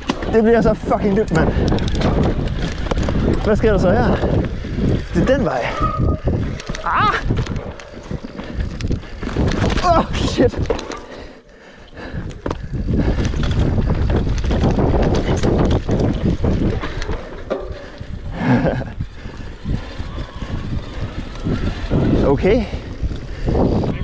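A mountain bike's frame and chain rattle over bumps.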